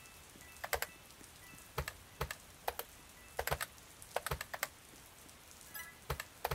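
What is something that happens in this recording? Footsteps tap along a hard floor.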